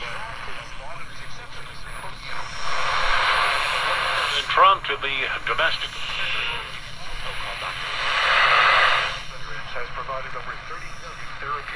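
A small radio hisses with static while its tuning changes.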